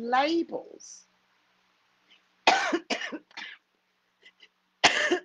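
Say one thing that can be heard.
A middle-aged woman speaks expressively, close to the microphone.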